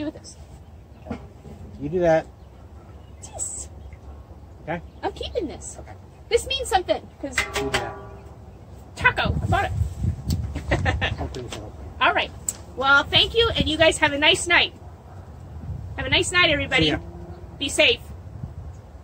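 A young woman talks with animation close by, outdoors.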